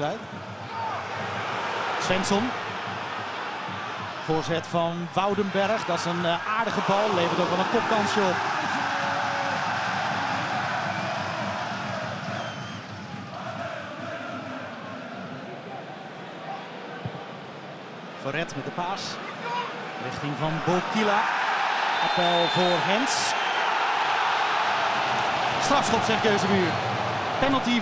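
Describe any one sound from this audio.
A large stadium crowd roars and cheers outdoors, rising and falling.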